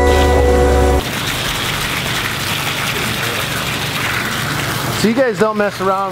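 Water sprays from a hose onto rocks.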